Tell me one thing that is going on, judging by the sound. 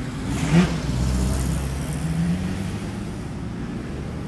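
An old car engine hums as the car drives past.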